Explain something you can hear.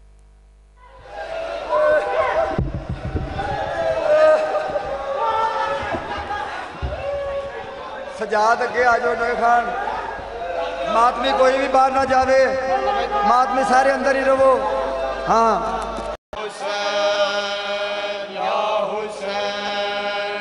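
A crowd of men chants loudly together in an echoing hall.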